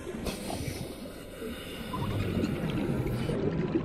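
Air bubbles gurgle and rise underwater.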